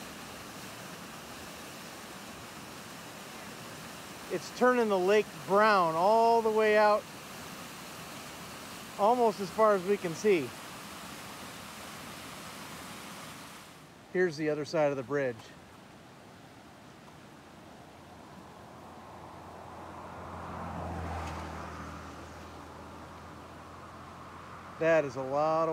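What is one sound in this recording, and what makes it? Floodwater rushes and churns steadily.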